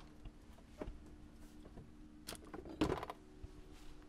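Bottles clink and rattle in a fridge door.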